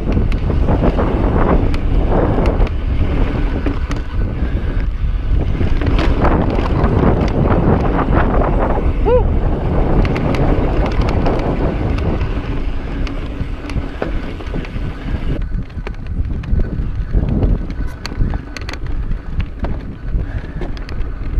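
A bicycle's gears and frame clatter over bumps.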